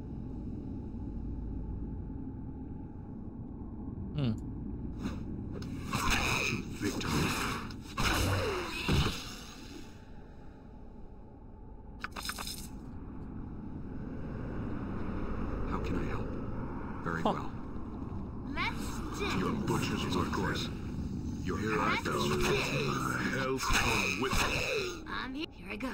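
Weapons clash and strike in a fantasy battle.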